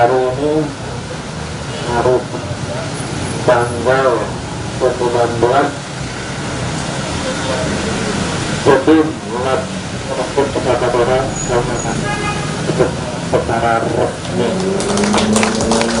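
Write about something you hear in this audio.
A middle-aged man speaks through a microphone and loudspeaker outdoors, addressing an audience with animation.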